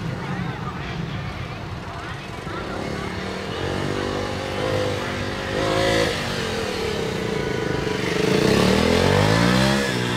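A motorcycle engine revs up and down as the bike weaves through tight turns.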